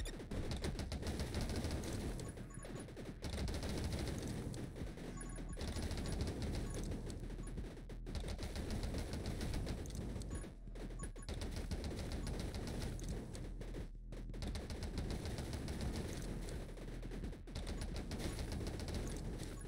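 Rapid electronic gunshots fire in a steady, fast stream.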